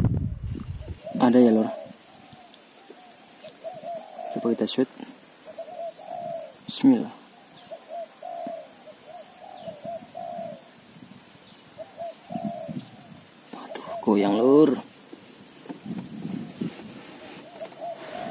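A bird calls repeatedly from a nearby tree.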